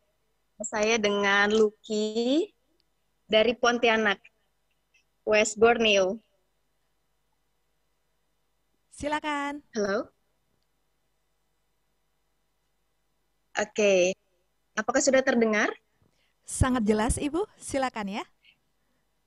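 A woman speaks cheerfully over an online call, in short bursts with pauses.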